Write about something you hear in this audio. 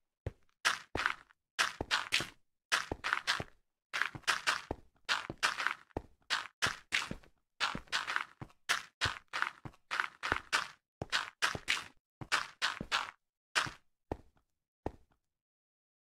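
Footsteps crunch quickly and evenly over rough ground, then slow and stop.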